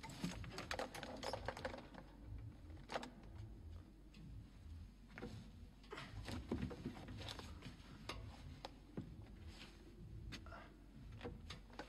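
A wooden loom clacks and knocks as its frame moves back and forth.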